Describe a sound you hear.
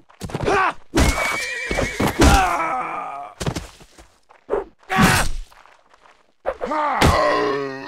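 Swords and a war hammer strike in a melee fight.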